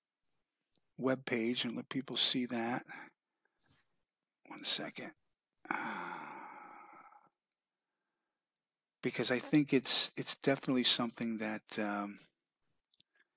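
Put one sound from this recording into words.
A middle-aged man talks calmly over an online call, in short bursts with pauses.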